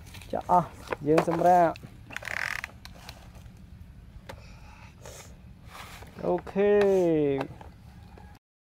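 A plastic toy truck scrapes and rattles through loose dirt.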